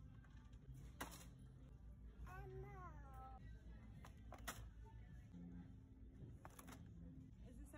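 Toy packages knock and rattle in a shopping cart.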